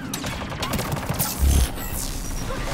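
An energy blast explodes with a loud boom.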